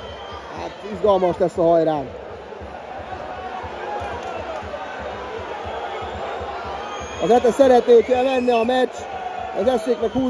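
A large stadium crowd chants and sings loudly in bursts.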